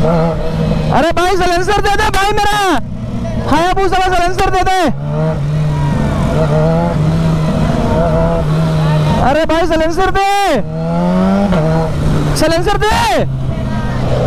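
Another motorcycle engine revs loudly nearby in sharp, swelling bursts.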